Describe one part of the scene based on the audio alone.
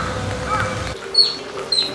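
An otter squeaks in short high chirps.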